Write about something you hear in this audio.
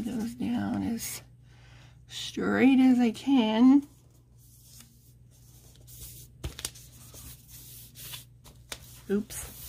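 Paper crinkles and rustles as it is folded and pressed flat.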